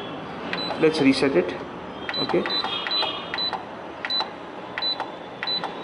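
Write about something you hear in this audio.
A machine gives short high beeps with each button press.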